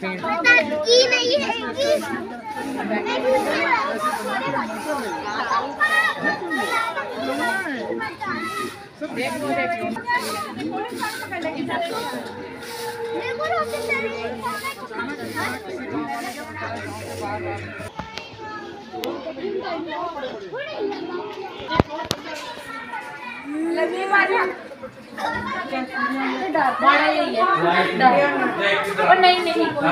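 Men and women chatter nearby, outdoors.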